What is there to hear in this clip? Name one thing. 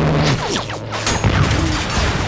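A missile explodes with a sharp bang.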